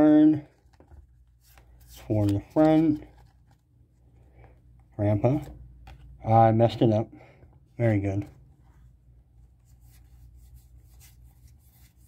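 Stiff cards slide and flick against each other.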